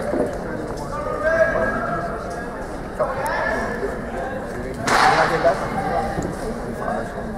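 A man speaks loudly through a loudspeaker, announcing.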